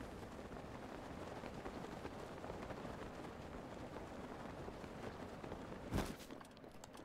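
Wind rushes past during a glide.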